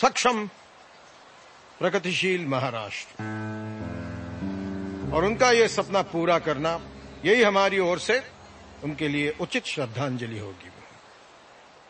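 A middle-aged man speaks forcefully into microphones.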